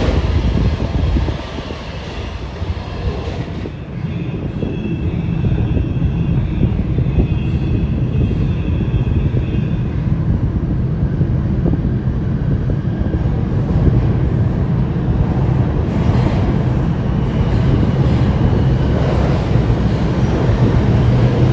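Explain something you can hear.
A subway train rumbles along the tracks, growing louder as it approaches.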